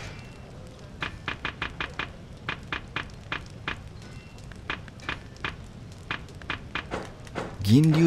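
Short menu clicks tick quickly one after another.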